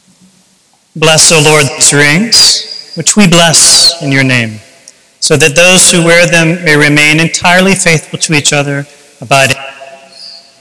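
A man speaks slowly and clearly, close to a microphone, in an echoing hall.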